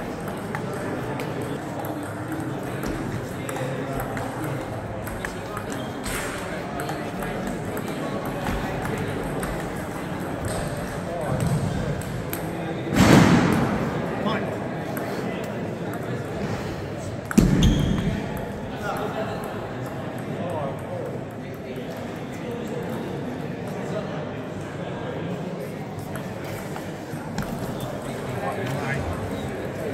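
Paddles strike a table tennis ball in a rally, in a large echoing hall.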